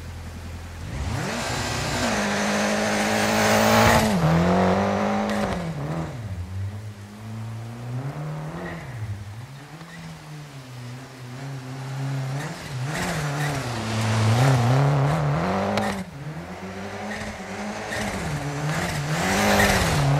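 A rally car engine revs hard and roars as the car speeds away, rising and falling with each gear change.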